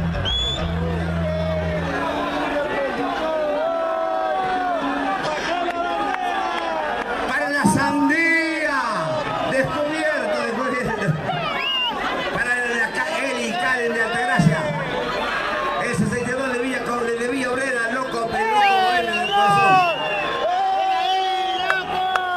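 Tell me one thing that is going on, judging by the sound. A rock band plays loudly outdoors through loudspeakers.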